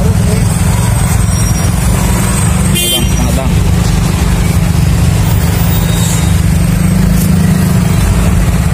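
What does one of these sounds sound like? Truck engines idle nearby in heavy traffic.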